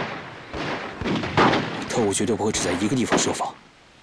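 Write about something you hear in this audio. A young man speaks in a low, serious voice.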